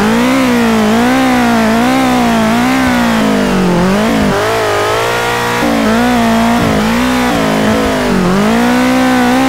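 A sports car engine in a driving game revs up and down.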